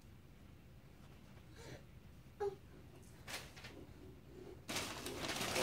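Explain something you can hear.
Wrapping paper crinkles and rustles as a toddler drags it across the floor.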